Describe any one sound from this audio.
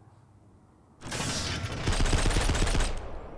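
A rifle fires in rapid bursts with loud bangs.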